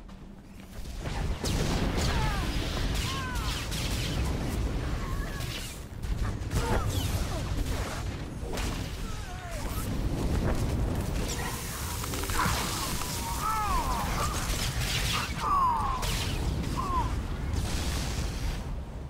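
Blasts and energy bursts crackle and boom.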